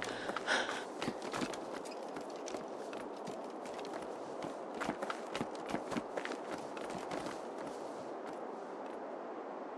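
Footsteps thud and creak on wooden planks.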